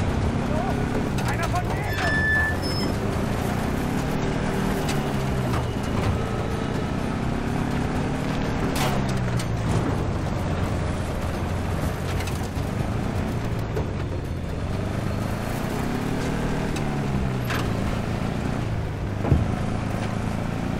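A vehicle engine rumbles and changes pitch as it shifts gears.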